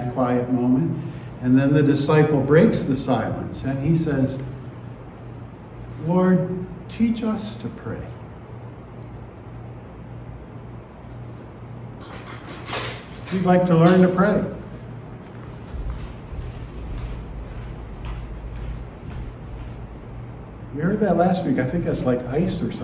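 An older man speaks calmly and slowly into a microphone, with long pauses.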